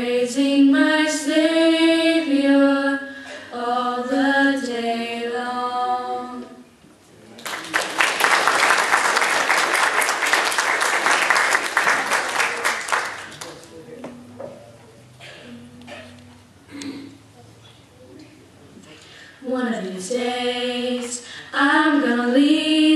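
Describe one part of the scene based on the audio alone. Young girls sing together in harmony through a microphone.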